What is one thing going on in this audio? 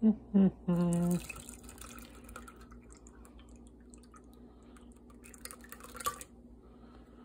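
Liquid pours and splashes into a metal strainer.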